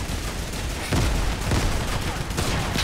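A loud explosion booms in a game.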